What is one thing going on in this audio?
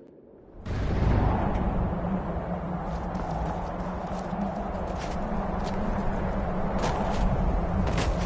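A strong blizzard wind howls and roars steadily outdoors.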